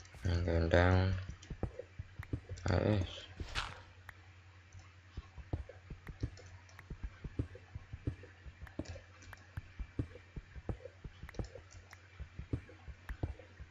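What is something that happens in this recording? A video game pickaxe chips at stone in quick clicks.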